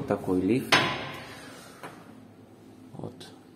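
Metal elevator doors slide and clatter shut.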